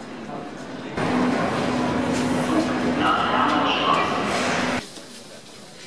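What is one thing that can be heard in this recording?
A tram rumbles and screeches loudly close by.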